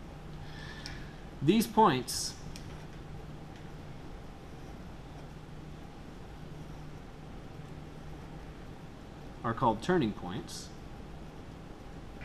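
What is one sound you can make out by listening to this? A marker pen scratches softly across paper.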